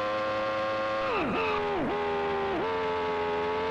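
A synthesized engine pitch swoops down sharply as the car brakes hard.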